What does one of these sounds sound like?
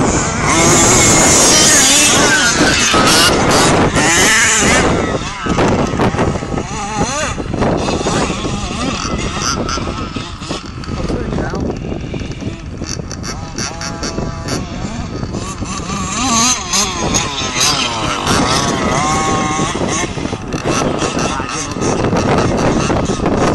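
A remote-control car's electric motor whines and revs up and down.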